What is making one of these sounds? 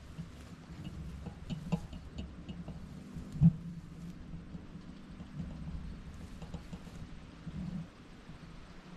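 A small tractor engine idles steadily in the distance.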